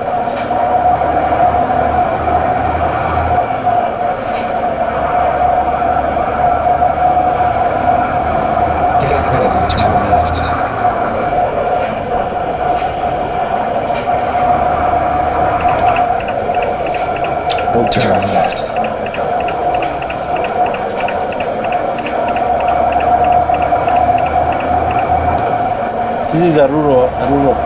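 A diesel truck engine drones while cruising along a road.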